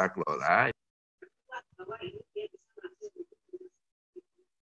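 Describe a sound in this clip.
A man speaks through an online call.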